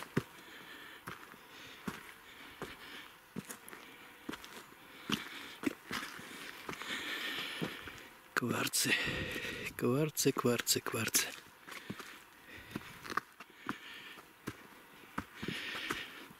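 Footsteps crunch on stony, leaf-covered ground.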